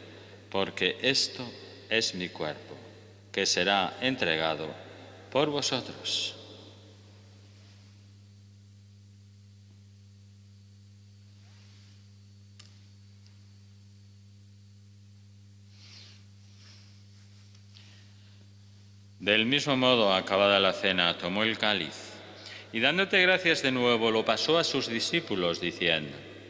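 An elderly man chants and speaks slowly into a microphone, with echo.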